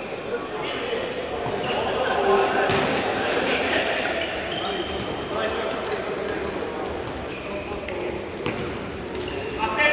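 Players kick a futsal ball on an indoor court.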